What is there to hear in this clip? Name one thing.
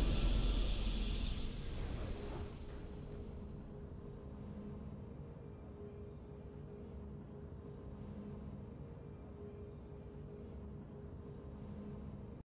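Soft, steady game music hums on.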